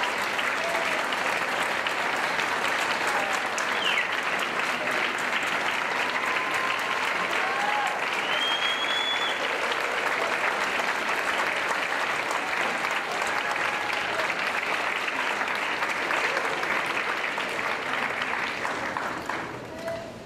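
A band plays lively music in a large hall.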